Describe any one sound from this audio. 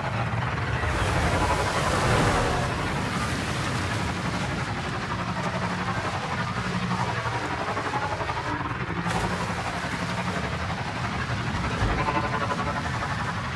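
Water splashes under tyres.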